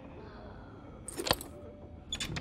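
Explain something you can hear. A metal doorknob turns and clicks.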